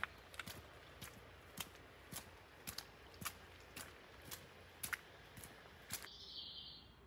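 Footsteps crunch steadily on a soft, muddy path.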